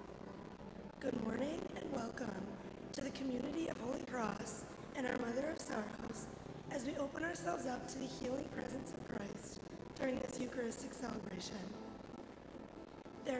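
A young woman reads out calmly through a microphone in an echoing hall.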